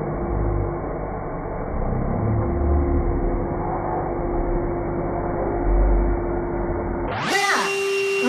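A handheld vacuum cleaner hums steadily.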